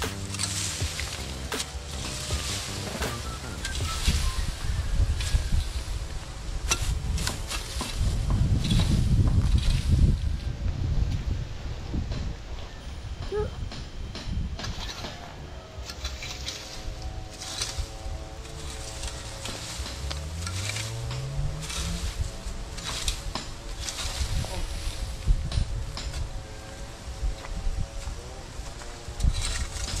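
A rake scrapes and rustles through dry grass and leaves.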